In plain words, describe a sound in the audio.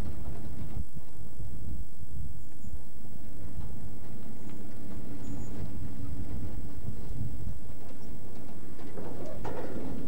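A car engine hums as the car rolls slowly over a rough dirt road.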